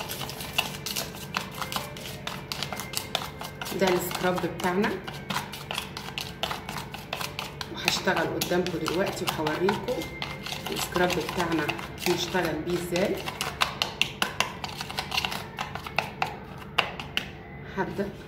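A plastic spoon scrapes and taps against a plastic bowl.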